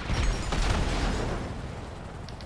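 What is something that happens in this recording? A vehicle explodes with a loud roaring blast.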